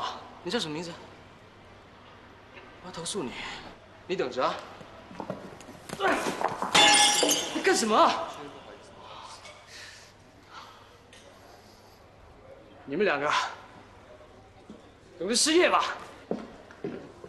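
A young man speaks angrily and loudly, close by.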